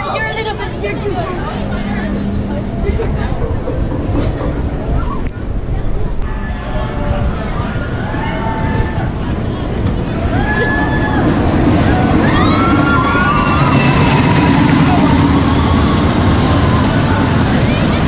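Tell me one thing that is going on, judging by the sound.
A ride car rumbles and clatters along a track.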